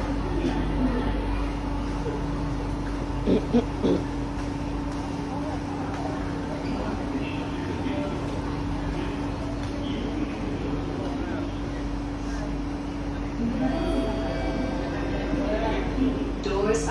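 A train's motors hum steadily while it stands.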